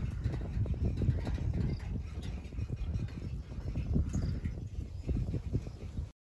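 Wind gusts and rumbles against the microphone outdoors.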